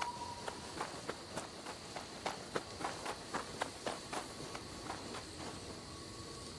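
Footsteps crunch over gravel and leaves.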